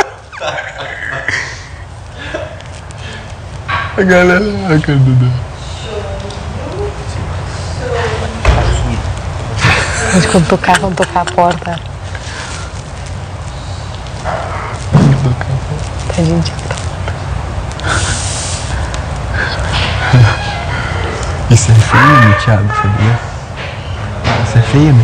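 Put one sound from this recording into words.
A young woman laughs and talks nearby.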